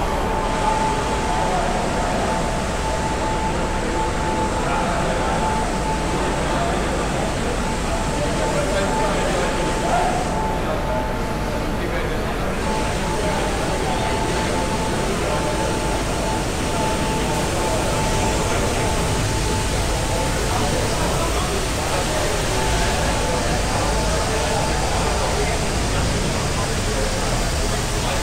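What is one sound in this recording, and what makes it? An engine-driven pump hums steadily.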